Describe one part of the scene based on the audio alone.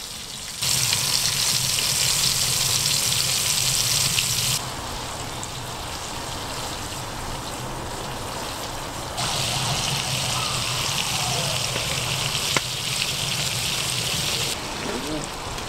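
Food sizzles loudly in hot oil.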